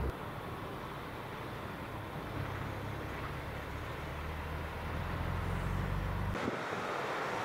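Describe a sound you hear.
A heavy truck's diesel engine rumbles as it drives past.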